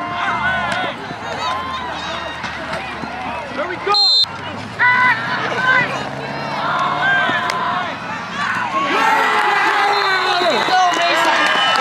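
A large crowd cheers and shouts from the stands outdoors.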